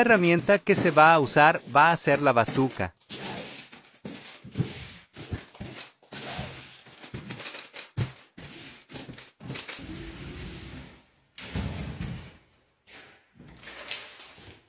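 A taping tool clicks and squishes as joint compound is applied overhead.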